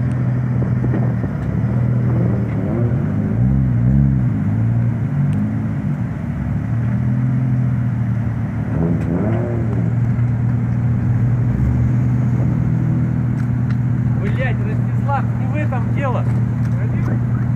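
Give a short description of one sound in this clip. Car engines idle loudly with a deep, steady rumble.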